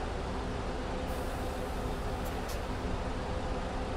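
Bus doors close with a short hiss and knock.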